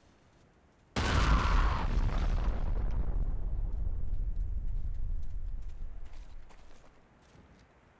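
A loud explosion booms nearby and slowly rumbles away.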